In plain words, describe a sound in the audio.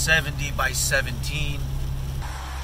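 A middle-aged man speaks cheerfully, close by.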